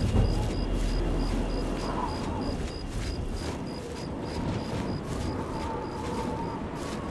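Quick footsteps run through tall grass.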